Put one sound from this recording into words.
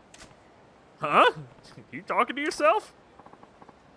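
A young woman exclaims in short, flustered bursts.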